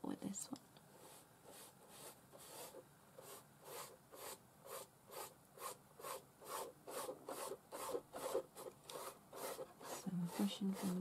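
A brush dabs and taps rapidly on paper.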